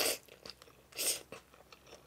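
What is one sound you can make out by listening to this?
A young woman chews wetly and smacks her lips, close up.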